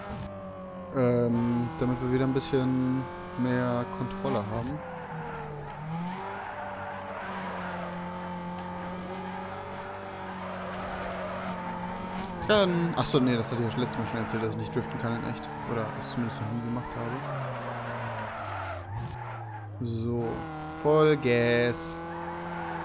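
Tyres screech loudly as a car drifts.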